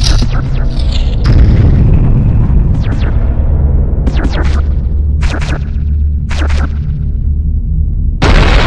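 Short sharp whooshing game effects sound now and then.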